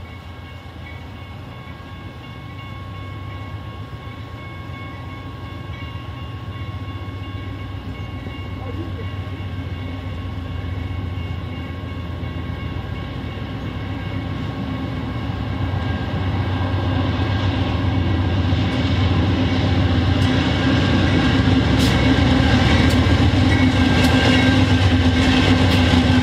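A diesel locomotive engine rumbles, growing louder as it approaches.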